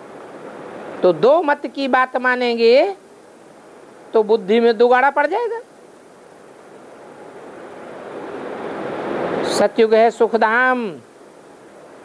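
An elderly man reads aloud close by in a slow, chanting voice, with pauses.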